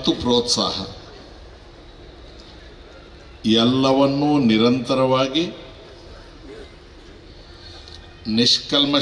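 An elderly man speaks forcefully into a microphone over a loudspeaker, in bursts with pauses.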